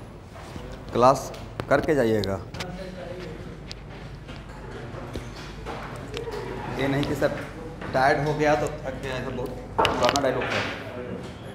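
A man speaks through a clip-on microphone, explaining in a lecturing voice.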